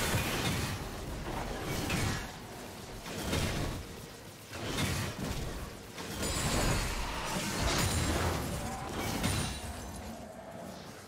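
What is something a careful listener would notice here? Magical spell effects whoosh and crackle in bursts during a fight.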